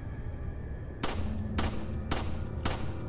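A pistol fires several sharp shots in quick succession.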